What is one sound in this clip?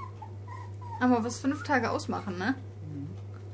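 A middle-aged woman speaks to a puppy close by.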